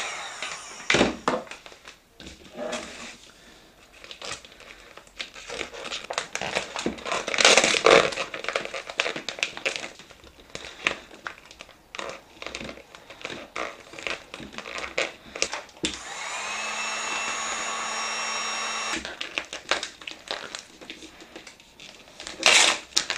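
Plastic sheeting crinkles and rustles under a hand.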